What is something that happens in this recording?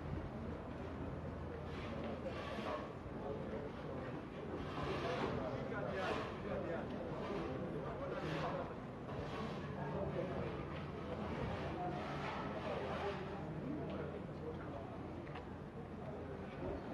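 Several men talk nearby, outdoors.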